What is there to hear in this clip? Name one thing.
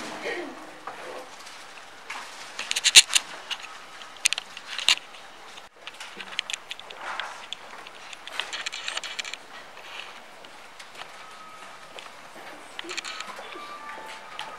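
A crowd murmurs and chatters indoors.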